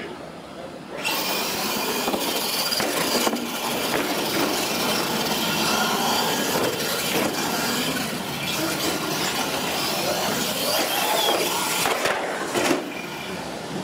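Electric radio-controlled monster trucks whine as they race.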